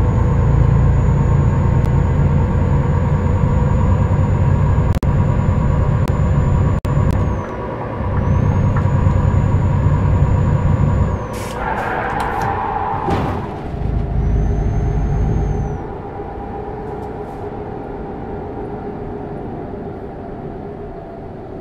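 A truck engine drones steadily as it drives along a road.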